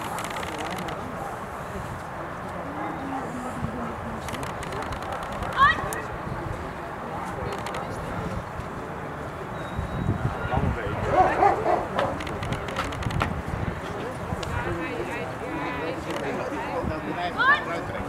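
A dog growls and snarls.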